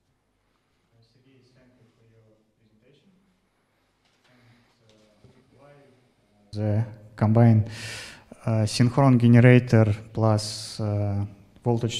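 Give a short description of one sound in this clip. A young man asks a question through a handheld microphone.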